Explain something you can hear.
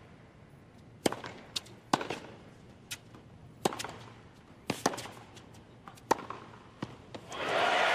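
Tennis balls are struck with sharp pops of rackets, back and forth.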